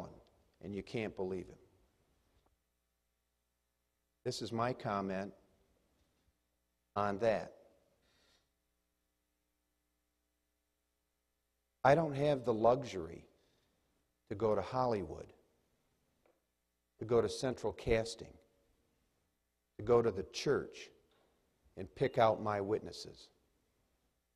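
A man speaks calmly through a microphone in a large hall, with pauses between phrases.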